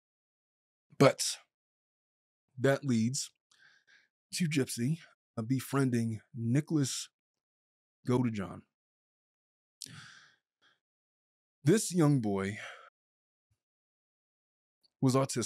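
A man speaks calmly and close into a microphone, with pauses.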